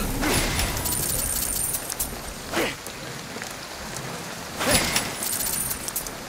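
Debris shatters and clatters.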